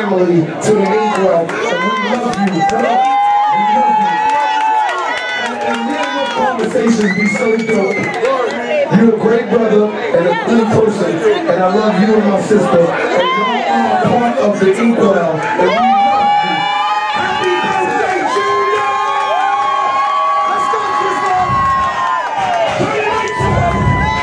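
A crowd of men and women sings and cheers loudly close by.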